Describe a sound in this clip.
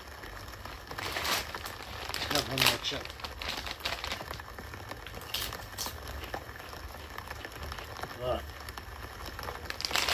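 A young man crunches chips.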